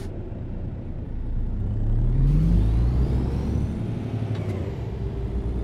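A heavy truck engine revs up as the truck pulls away again.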